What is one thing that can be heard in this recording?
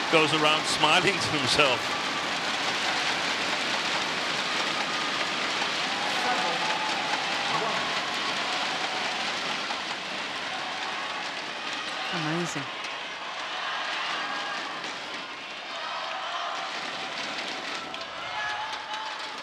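A large indoor crowd cheers and chatters loudly, echoing around a big hall.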